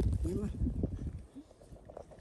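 Small stones click and rattle as a hand sorts through them.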